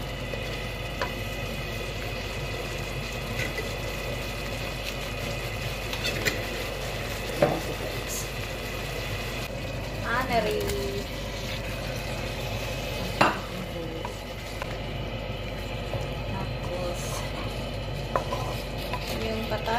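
Thick sauce bubbles and pops as it simmers.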